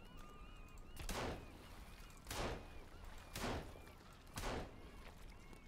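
A pistol fires several shots in a row.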